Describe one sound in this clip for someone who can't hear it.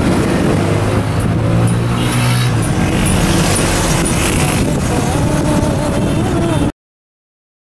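Traffic rumbles past on a busy street.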